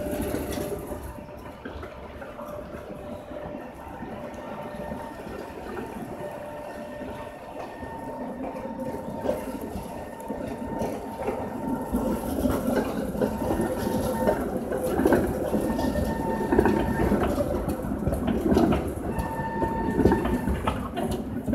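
Tram wheels squeal on a curve.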